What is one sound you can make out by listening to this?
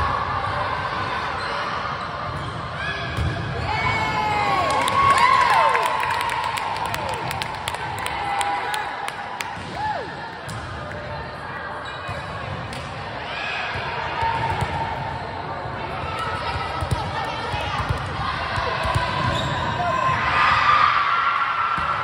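Young girls call out and chatter in a large echoing gym.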